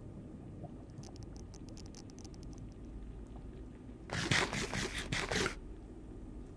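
Crunchy eating sounds repeat quickly.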